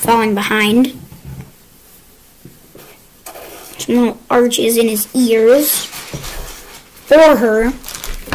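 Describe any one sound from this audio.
A young child speaks with animation close by.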